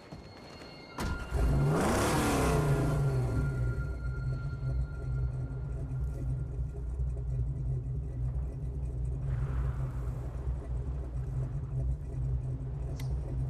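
A car engine starts with a roar and then idles with a steady low rumble.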